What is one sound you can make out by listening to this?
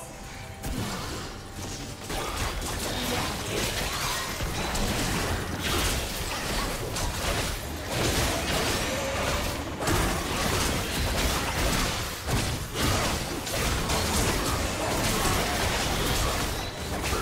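Spell and fighting effects crackle and whoosh in a game.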